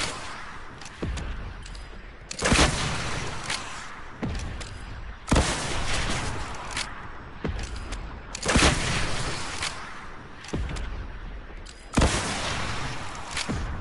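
Rockets explode with heavy booms.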